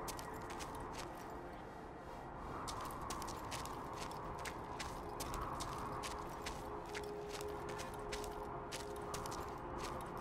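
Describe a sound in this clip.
Footsteps crunch on snow and ice.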